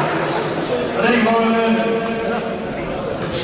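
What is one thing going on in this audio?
A man speaks close by in a raised voice.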